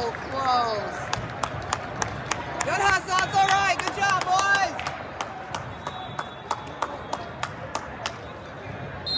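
A volleyball thumps against hands and the floor.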